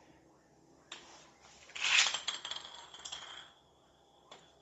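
A plastic spinning top whirs across a hard floor.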